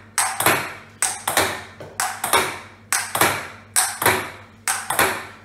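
A ping-pong ball bounces back and forth in a quick, steady rhythm, each tap ringing briefly in the room.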